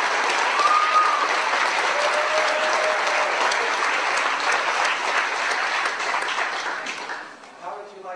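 A large crowd applauds and cheers loudly in a big hall.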